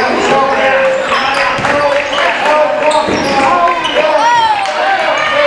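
Sneakers squeak sharply on a hard court floor in a large echoing gym.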